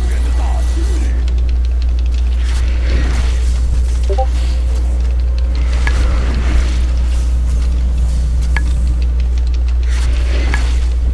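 Magic blasts and sharp hits clash in a fast fight.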